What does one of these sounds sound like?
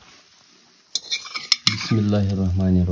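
A metal spatula scrapes and clinks against a steel pan.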